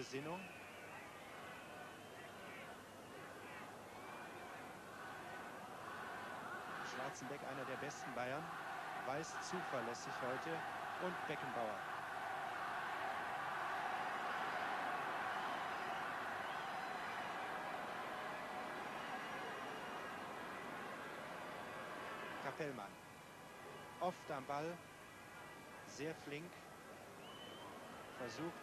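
A large stadium crowd roars, swelling louder and then falling away.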